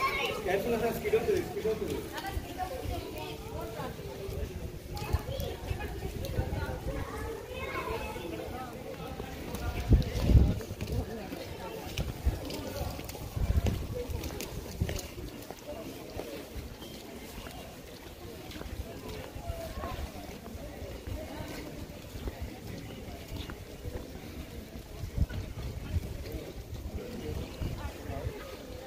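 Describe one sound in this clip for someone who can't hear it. People chatter and murmur nearby outdoors.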